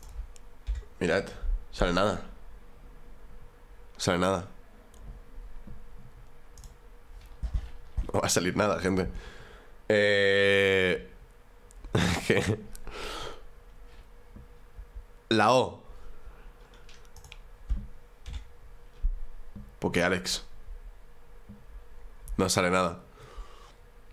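A young man talks casually into a microphone in short bursts.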